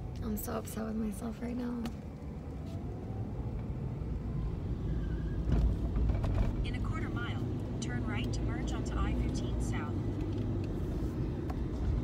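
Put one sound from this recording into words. A car engine hums low and steady from inside the car.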